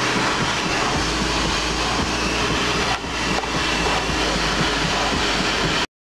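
A mechanical organ plays a lively tune up close, with many pipes sounding together.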